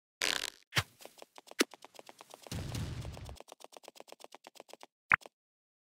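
Quick, light footsteps patter steadily.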